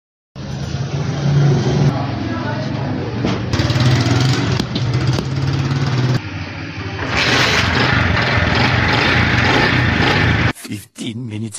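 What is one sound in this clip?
A motorcycle engine idles steadily nearby.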